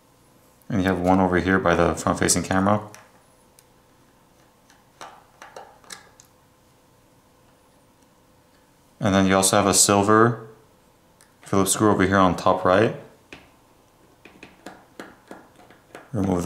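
Small plastic parts click and tap as a tool pries at them.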